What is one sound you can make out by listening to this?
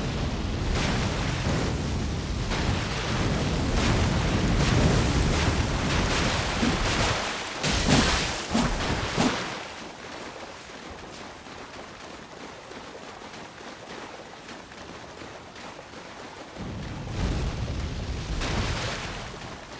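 Water splashes under running feet.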